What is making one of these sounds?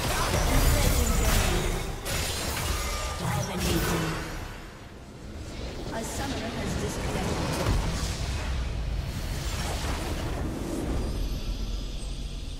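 Video game spell blasts and clashing weapons crackle in a rapid, busy battle.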